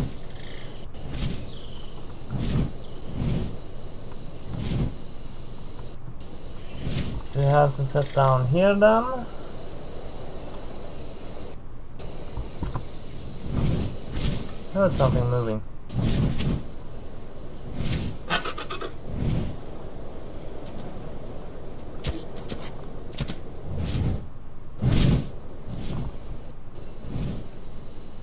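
Large wings flap in heavy beats.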